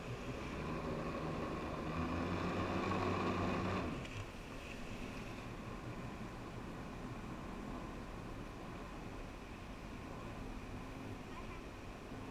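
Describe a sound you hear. Water rushes and churns in a boat's wake.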